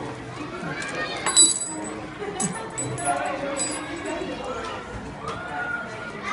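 Children talk and chatter nearby, outdoors.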